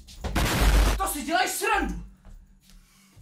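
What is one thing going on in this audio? A young man exclaims loudly and with animation, close to a microphone.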